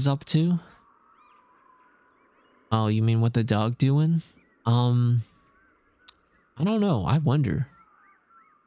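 A young man talks with animation through a microphone.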